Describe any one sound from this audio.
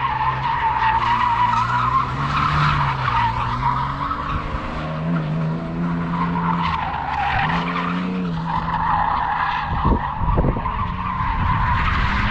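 Tyres screech on asphalt as a car drifts in the distance.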